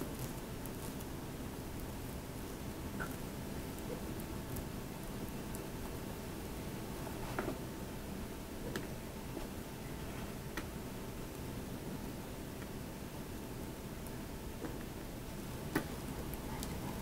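A knife spreads a soft filling over a cake layer with light scraping and taps.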